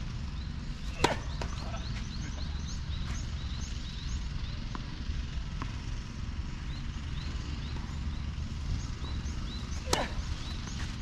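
A tennis ball is struck sharply by a racket.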